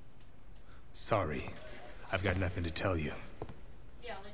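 A man answers in a deep voice, heard close.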